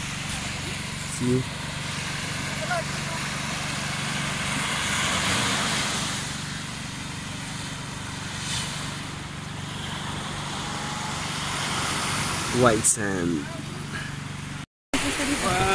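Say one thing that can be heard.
Gentle waves wash onto a sandy shore, outdoors in light wind.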